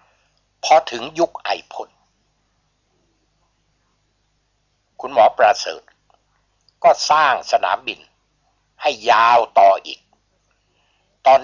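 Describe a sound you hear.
A man speaks calmly in short phrases, with pauses between them.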